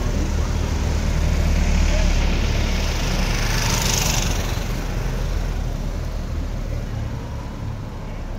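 Small motorcycles ride along a street outdoors.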